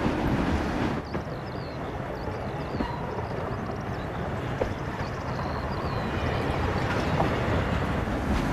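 A diesel railcar approaches along the tracks, its engine slowly growing louder.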